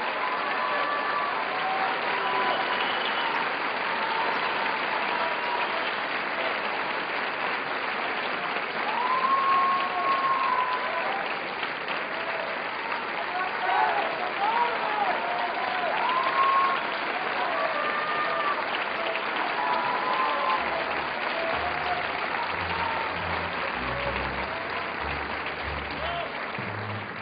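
Audience members whistle and cheer.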